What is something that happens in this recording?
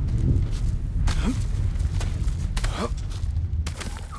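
Hands grip and scrape against rock during a climb.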